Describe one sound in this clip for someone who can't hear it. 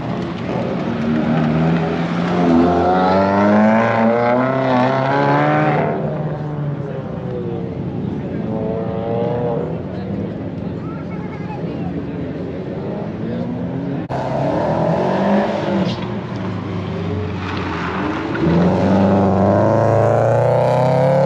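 A car engine revs hard and roars as the car speeds around nearby.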